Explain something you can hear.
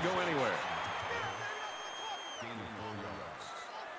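A large crowd cheers in a stadium.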